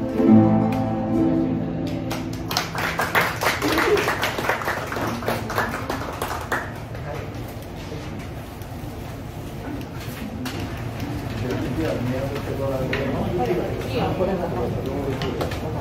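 A group of mandolins and guitars plays a melody together.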